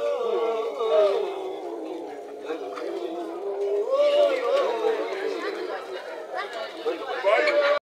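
A crowd of men and women sing loudly together close by.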